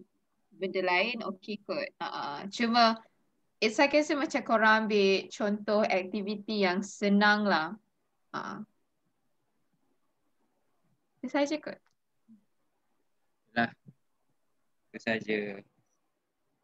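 A young woman speaks calmly over an online call, with pauses.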